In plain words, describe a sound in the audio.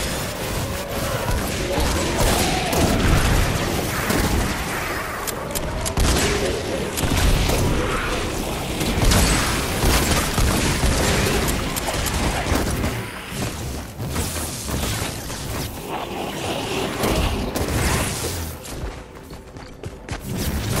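Game weapons swing and strike enemies with sharp whooshing hits.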